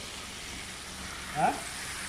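Hot oil sizzles in a deep fryer.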